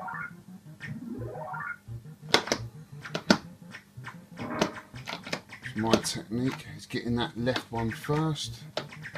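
An arcade game plays quick electronic bleeps and rising chirps.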